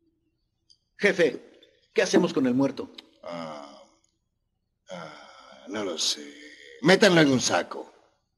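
A man speaks forcefully and close by.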